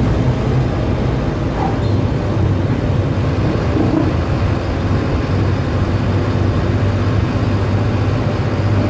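A bus engine drones steadily while driving.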